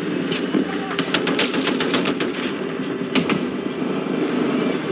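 Rapid gunfire cracks nearby.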